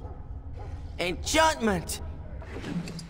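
A magic spell whooshes and shimmers.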